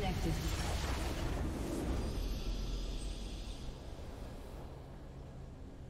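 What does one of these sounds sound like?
A short victory fanfare swells and fades.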